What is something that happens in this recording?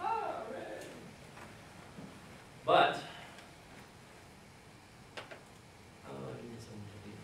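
A man speaks in short bursts, heard from across a room.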